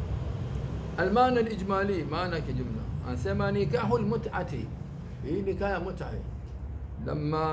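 An older man speaks calmly into a clip-on microphone.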